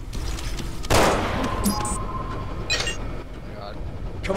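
An electronic control panel beeps and chimes.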